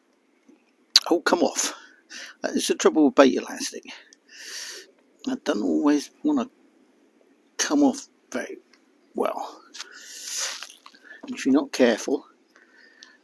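An elderly man talks calmly, close by.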